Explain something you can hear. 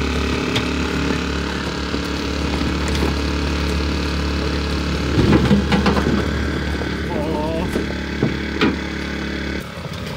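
Tyres crunch and scrape over rocks.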